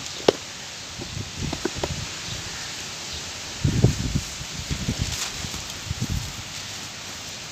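A lump of packed sand crumbles and crunches in hands.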